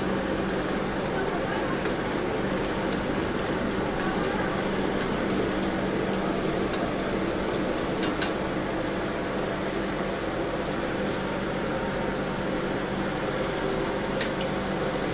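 A gas burner roars steadily under a wok.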